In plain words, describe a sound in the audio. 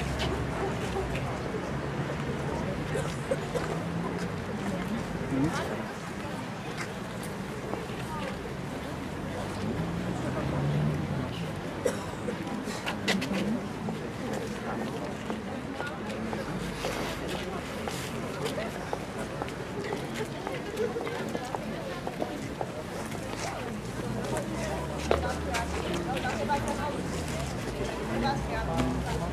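A crowd murmurs softly outdoors in light wind.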